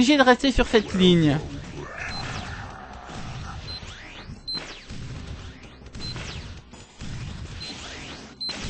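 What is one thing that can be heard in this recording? Laser guns zap over and over.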